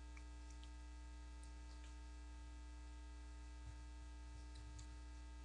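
An electrical hum drones steadily through the loudspeaker.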